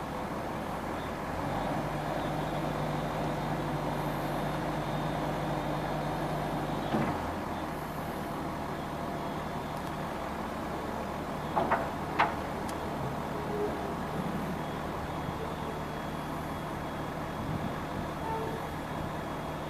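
A diesel engine of a wheel loader rumbles steadily.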